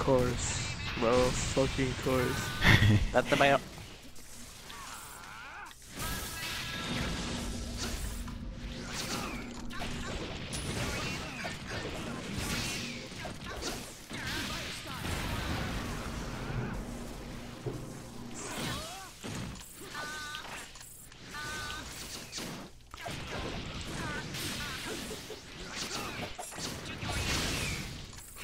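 Game explosions and energy blasts boom and crackle.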